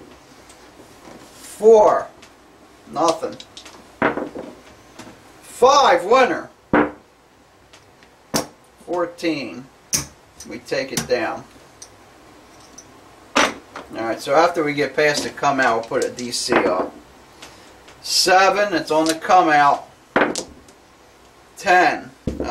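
Casino chips clack as they are placed on a table.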